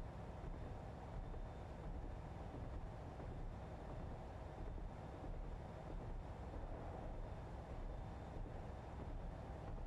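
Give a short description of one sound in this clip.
A train engine rumbles steadily as the train runs along the track.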